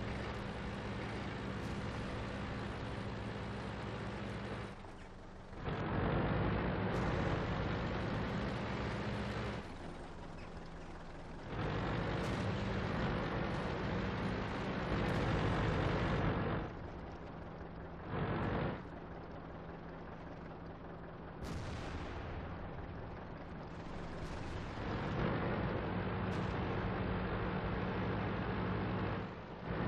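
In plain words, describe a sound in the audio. A heavy tank engine rumbles and roars as the tank drives.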